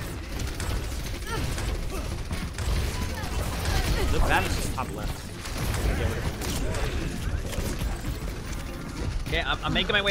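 Gunfire from a video game rattles rapidly.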